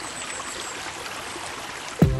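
A shallow stream babbles over rocks.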